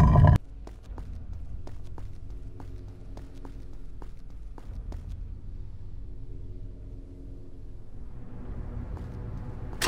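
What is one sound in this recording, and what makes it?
Footsteps run on a stone floor.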